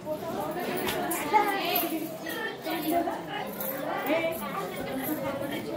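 Many children chatter and call out together close by.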